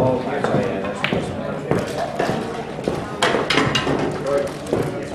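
Pool balls click together on the table.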